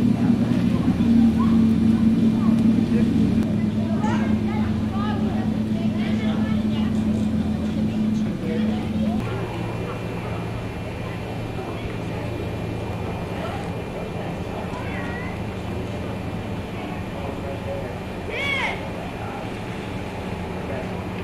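Children and adults call out and laugh faintly in the distance.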